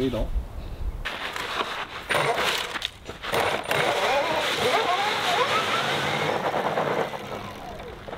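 A small motor whines and revs up.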